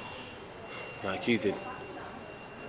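A young man speaks softly up close.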